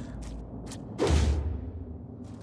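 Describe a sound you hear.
A blade swishes sharply through the air.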